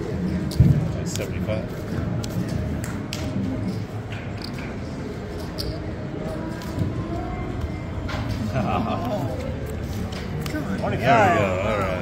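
Playing cards slide and snap onto a felt table.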